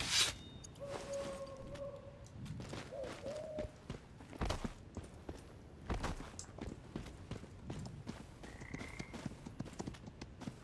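Footsteps crunch softly on grass and undergrowth.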